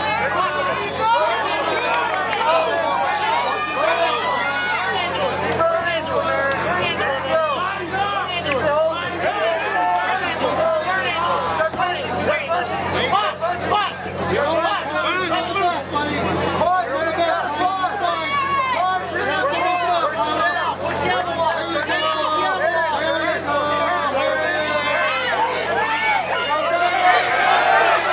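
A crowd of spectators shouts and cheers loudly and continuously nearby.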